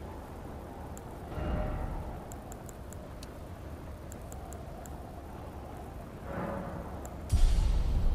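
Soft game menu clicks tick several times.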